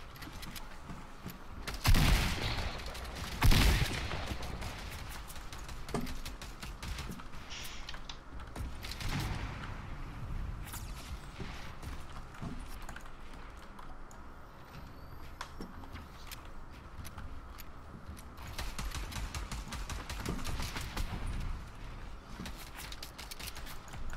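Keys on a keyboard click rapidly.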